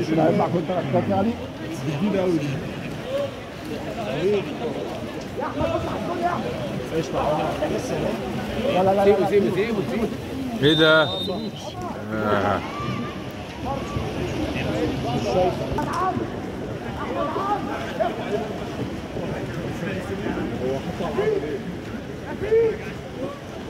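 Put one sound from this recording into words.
A crowd of spectators shouts and cheers in an echoing indoor pool.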